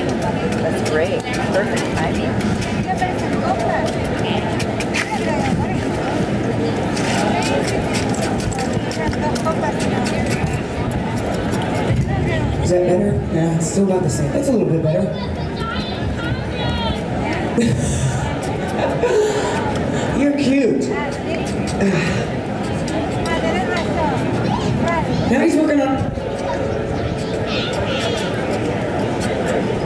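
A crowd of people chatters in the background.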